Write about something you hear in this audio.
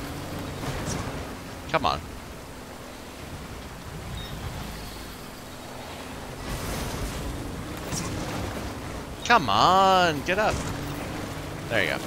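A shallow stream rushes and splashes under tyres.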